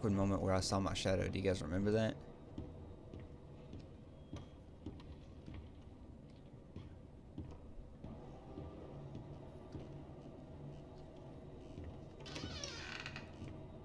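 Footsteps thud slowly on creaking wooden floorboards.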